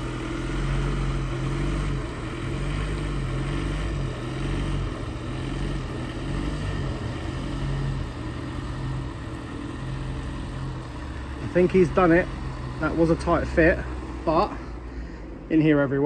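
A van's diesel engine rumbles as the van creeps slowly forward.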